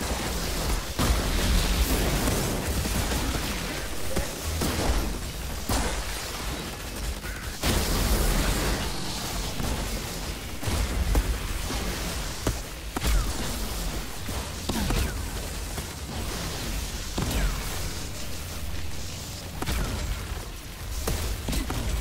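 Explosions rumble deeply.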